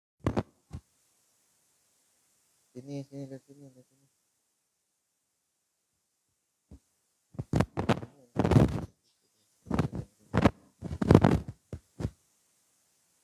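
A young man speaks with animation, close to a microphone, in short bursts.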